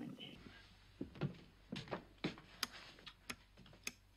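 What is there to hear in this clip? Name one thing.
A button clicks.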